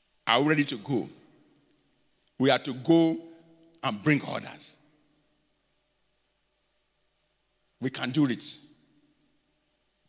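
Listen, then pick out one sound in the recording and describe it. A man speaks into a microphone with emphasis, in short bursts with pauses.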